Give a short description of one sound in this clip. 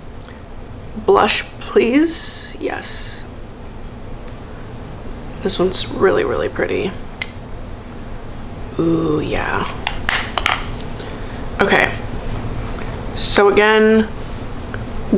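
A young woman speaks softly and calmly, close to a microphone.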